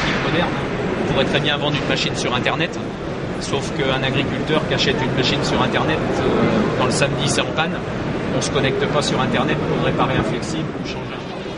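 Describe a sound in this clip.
A middle-aged man talks calmly to a small group, close by.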